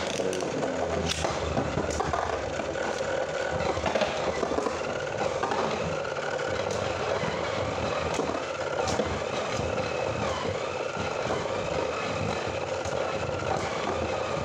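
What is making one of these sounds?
Spinning tops whir and scrape around a plastic dish.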